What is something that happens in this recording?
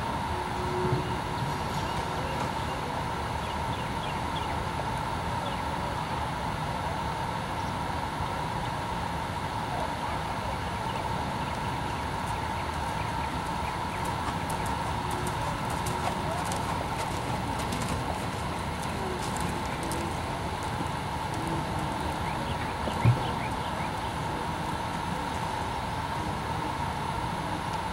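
A horse's hooves thud softly on sand as it trots.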